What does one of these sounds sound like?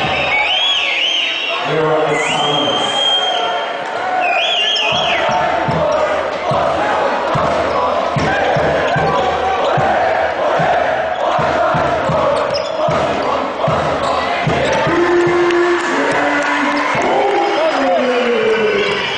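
A large crowd cheers and chants in an echoing hall.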